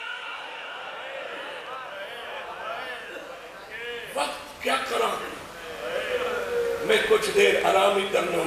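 A man recites loudly and passionately through a microphone.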